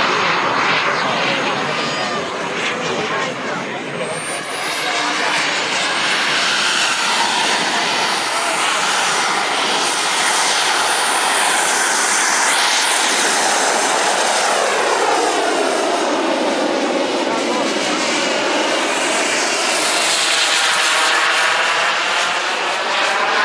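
A jet engine whines as it takes off and roars overhead, its pitch sweeping as it passes.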